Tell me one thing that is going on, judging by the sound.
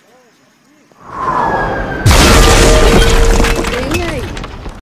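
A powerful explosion booms and roars.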